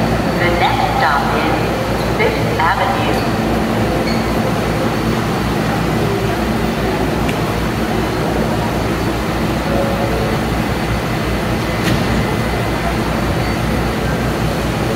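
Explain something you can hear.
A subway train hums and rumbles steadily nearby.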